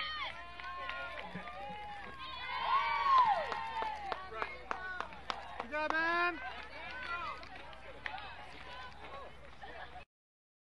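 Young girls shout and cheer from a distance outdoors.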